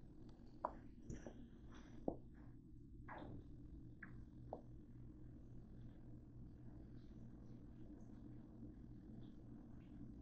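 An oven fan hums steadily.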